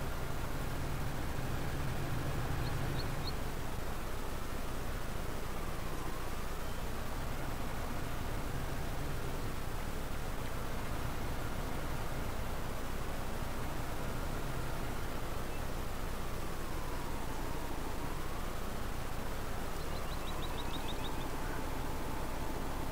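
A tractor engine hums steadily, its pitch rising and falling.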